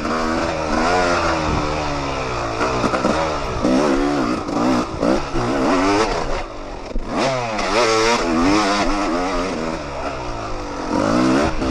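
A dirt bike engine revs up and down loudly, close by.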